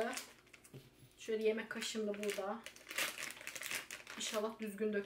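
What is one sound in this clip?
A paper packet rustles and tears.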